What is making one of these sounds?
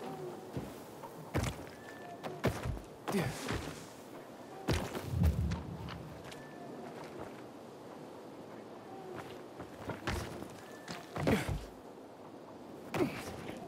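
Footsteps thud and land heavily as a runner jumps across rooftops.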